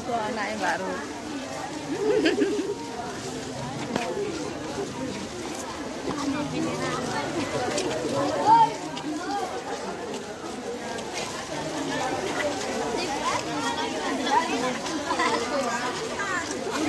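A crowd of children and women chatter and call out nearby outdoors.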